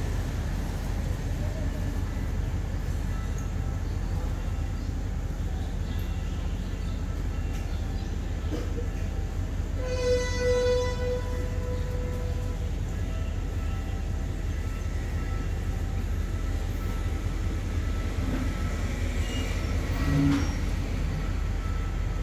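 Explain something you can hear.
A parked train's engine idles with a low, steady rumble.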